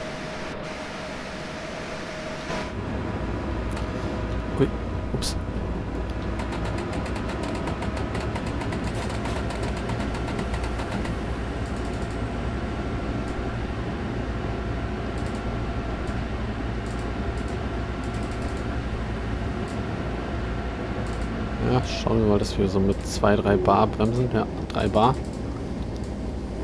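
An electric locomotive hums and rumbles steadily along the rails.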